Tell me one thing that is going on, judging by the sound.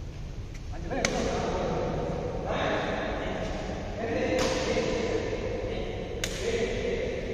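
A badminton racket strikes a shuttlecock in a large echoing hall.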